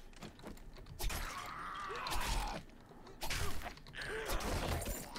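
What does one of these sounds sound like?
A knife slashes into flesh with wet thuds.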